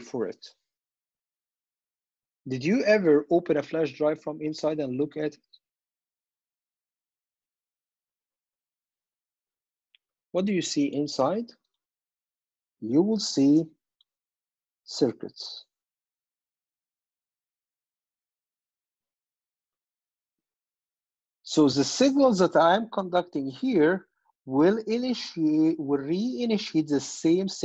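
A man speaks calmly into a microphone, in bursts with long pauses.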